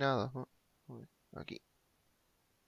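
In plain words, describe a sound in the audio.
A young man speaks briefly and casually into a microphone.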